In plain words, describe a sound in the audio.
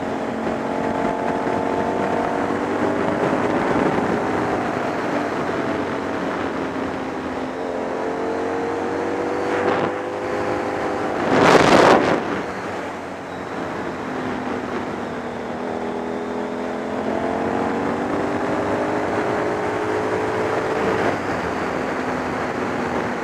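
Wind rushes past a motorcycle rider.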